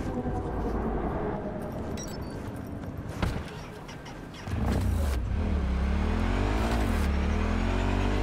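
A motorcycle engine idles, then revs up and roars, its pitch rising and falling.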